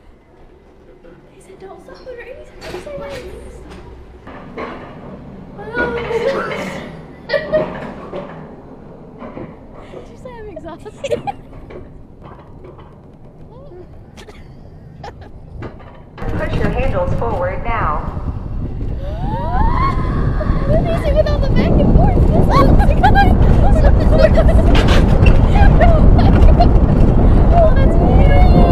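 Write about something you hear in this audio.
Young women laugh and talk excitedly close by.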